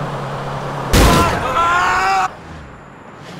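A car crashes into a truck with a loud bang.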